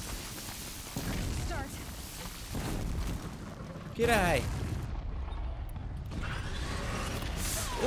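Explosions boom and crackle in a game.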